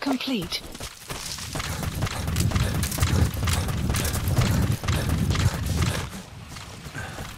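Footsteps run quickly over dry grass and dirt.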